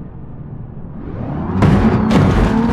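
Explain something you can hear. A car engine revs loudly and roars.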